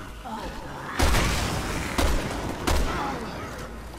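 Rifle shots bang loudly with a short echo.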